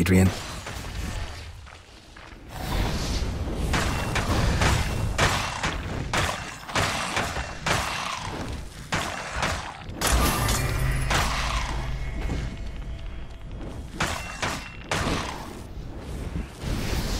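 Spells crackle and burst as a battle rages.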